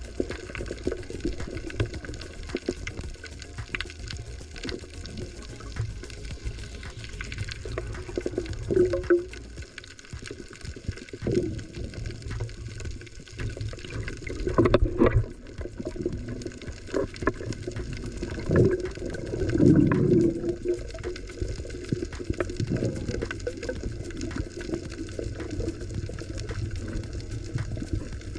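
Muffled water rumbles and swirls, heard from underwater.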